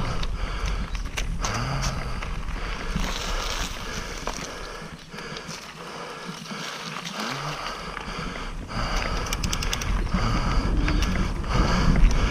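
Mountain bike tyres roll and crunch over a dirt trail.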